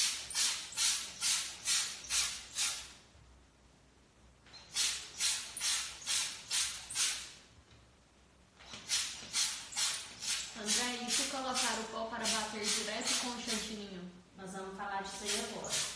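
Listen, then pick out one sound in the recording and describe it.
An airbrush hisses in short, rapid bursts of spray.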